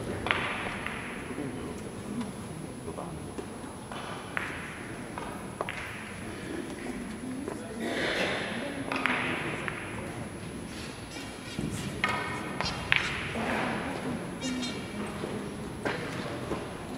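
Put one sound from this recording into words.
Billiard balls click against each other in a large echoing hall.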